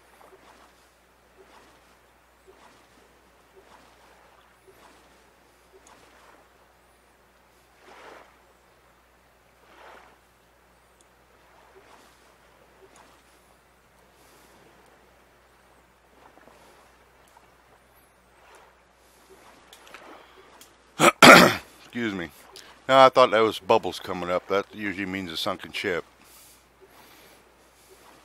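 A paddle splashes softly in calm water with each stroke.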